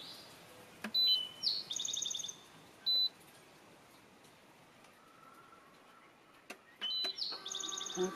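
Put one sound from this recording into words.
An electronic appliance gives short high beeps.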